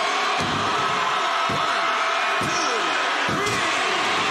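A hand slaps a canvas mat with loud thumps, several times.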